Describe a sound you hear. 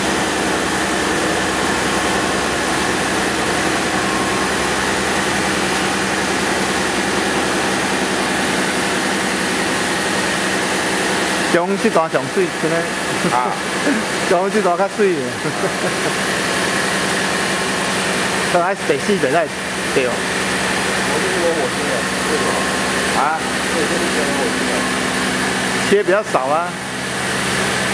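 A milling machine whirs and hums steadily as its cutter grinds metal.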